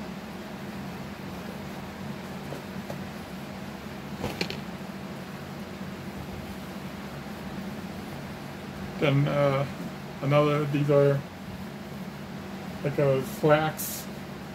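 Fabric rustles as clothing is handled.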